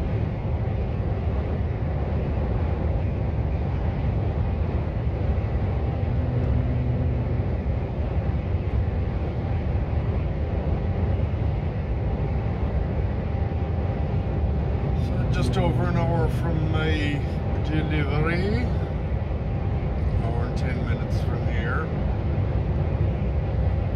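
A vehicle's engine drones steadily.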